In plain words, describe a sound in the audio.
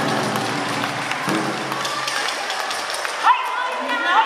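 Music plays loudly through loudspeakers in a large echoing hall.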